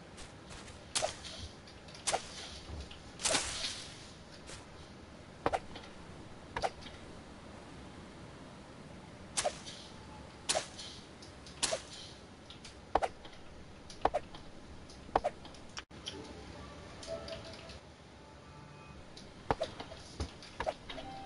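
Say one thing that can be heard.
A knife chops at plant leaves and wood in sharp, repeated strikes.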